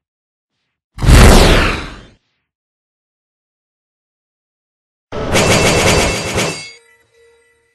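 A dragon roars in loud bursts.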